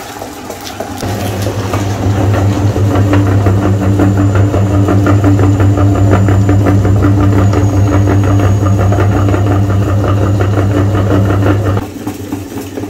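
Soft food squelches as it is pushed through a grinder.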